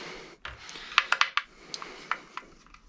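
A screwdriver taps and clicks against metal.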